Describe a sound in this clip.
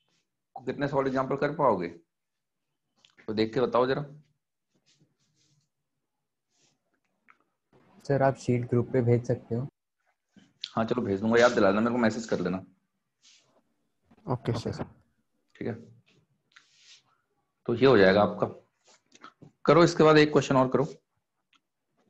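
A young man lectures with animation, pausing between phrases.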